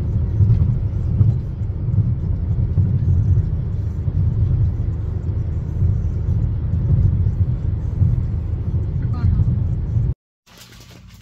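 A car's engine and tyres hum steadily from inside the car.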